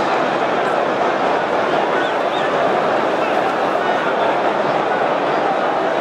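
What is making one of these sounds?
A large stadium crowd roars and chants steadily in the distance.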